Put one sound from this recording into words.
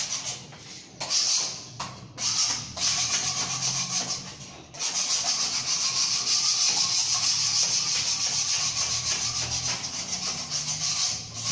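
A scraper blade scratches rapidly across tile grout.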